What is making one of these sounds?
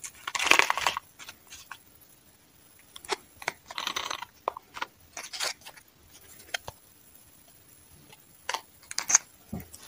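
Small plastic pieces knock and clatter in a cup.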